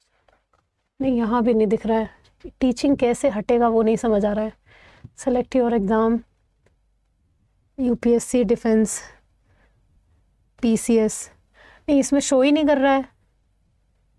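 A young woman speaks steadily and clearly into a close microphone, in bursts with short pauses.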